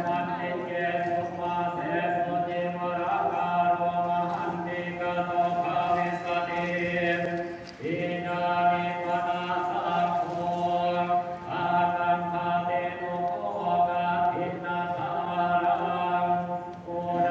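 A group of men chant together in a steady, droning unison.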